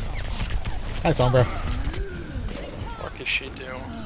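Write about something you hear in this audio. Weapons fire in quick bursts with sharp blasts.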